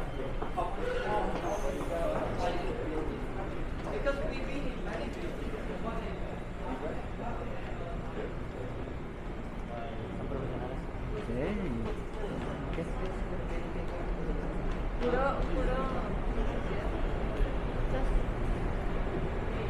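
Men and women chatter nearby in a large echoing hall.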